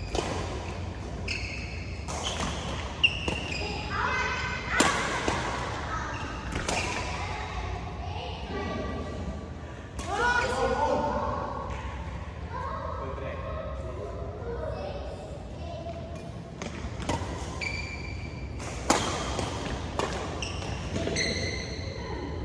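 Badminton rackets strike a shuttlecock in sharp smacks.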